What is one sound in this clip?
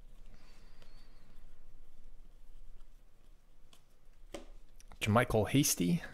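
Trading cards rustle and flick as they are sorted by hand.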